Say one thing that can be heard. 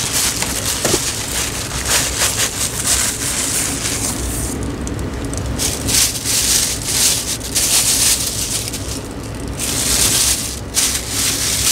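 Plastic wrapping crinkles and rustles in hands.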